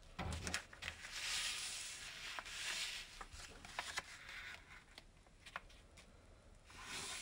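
Fingers rub along a paper crease.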